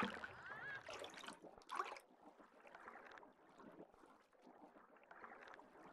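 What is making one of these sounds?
Water swirls and bubbles in a muffled underwater hush.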